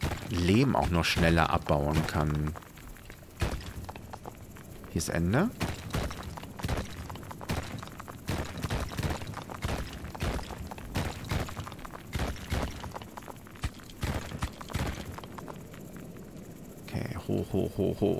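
Short electronic game sound effects click and blip rapidly.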